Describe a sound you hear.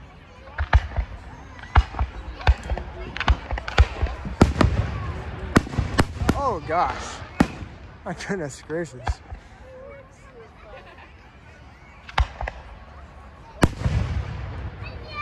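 Aerial fireworks shells boom and pop at a distance.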